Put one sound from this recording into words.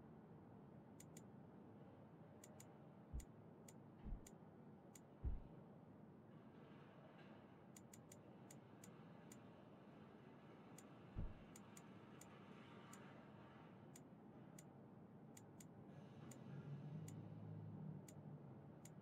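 Short electronic clicks tick again and again.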